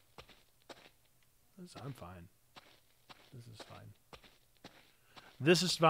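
Footsteps thud in an echoing corridor.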